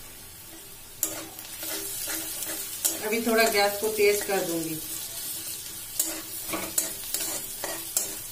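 A metal spatula scrapes and clatters against a metal pan.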